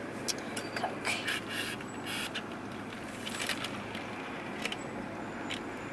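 A straw squeaks and rattles in a paper cup's lid.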